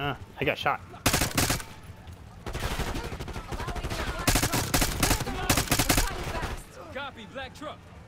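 Rapid gunshots fire in bursts at close range.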